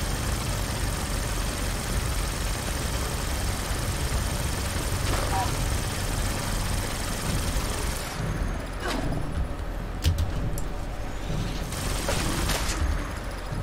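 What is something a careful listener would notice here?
An energy weapon fires in short bursts.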